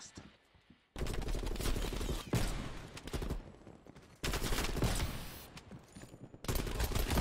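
Gunshots crack loudly and rapidly nearby.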